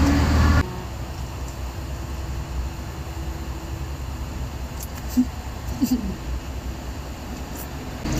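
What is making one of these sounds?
A young woman chews and slurps food.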